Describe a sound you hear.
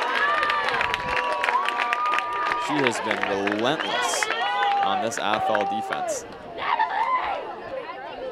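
Young women players shout excitedly as they celebrate.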